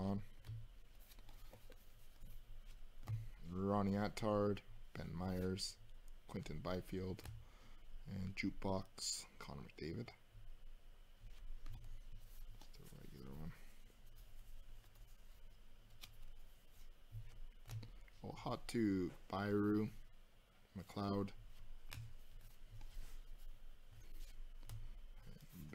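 Trading cards rustle and slide against each other close by.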